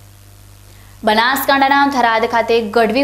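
A young woman speaks clearly into a microphone, like a news reader.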